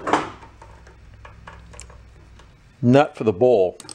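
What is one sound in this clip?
Locking pliers click as they clamp onto a metal rod.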